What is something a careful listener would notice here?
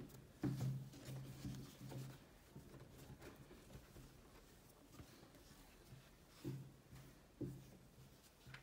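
Hands rustle against a crocheted yarn toy as they handle it.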